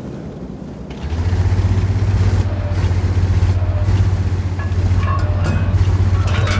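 The engine of a heavy tracked vehicle rumbles low under way.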